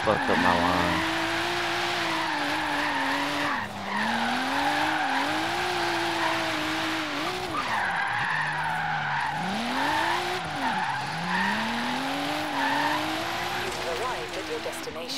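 A car engine revs hard, rising and falling as it shifts gears.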